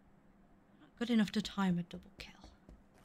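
A woman speaks briefly and with animation into a close microphone.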